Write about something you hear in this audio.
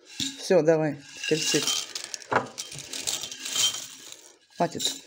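Dry cereal flakes rustle and clatter as they pour from a glass jar into a glass bowl.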